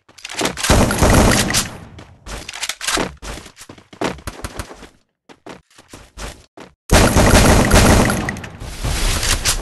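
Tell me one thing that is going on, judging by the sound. Bursts of rapid gunfire crack out loudly.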